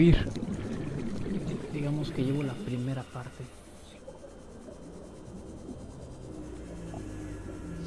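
A small submarine's motor hums steadily underwater.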